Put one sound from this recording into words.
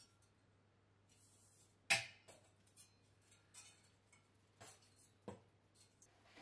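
A thin metal bead rattles and clicks as it is bent by hand.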